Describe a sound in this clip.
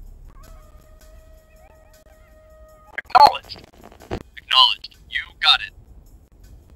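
Short electronic game sounds beep and chirp.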